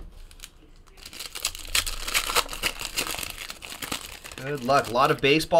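A plastic wrapper crinkles as it is torn open.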